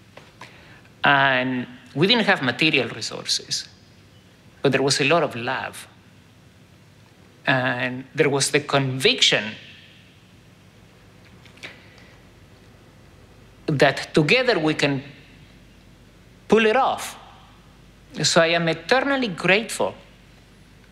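An older man speaks calmly and with pauses, close to a microphone.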